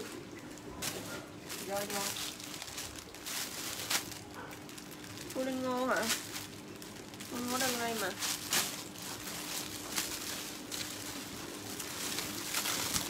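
Plastic packaging rustles and crinkles as it is handled.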